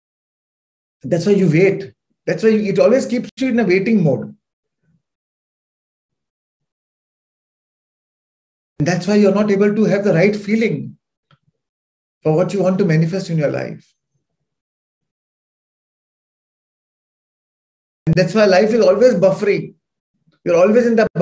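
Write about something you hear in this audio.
A man speaks calmly and with animation into a microphone, heard as if over an online call.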